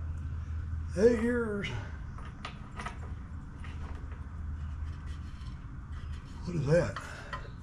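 A man speaks briefly and calmly close by.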